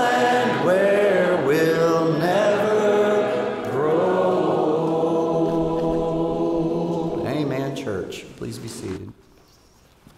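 A man leads the singing through a microphone.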